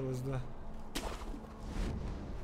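A grappling rope whips out and zips through the air.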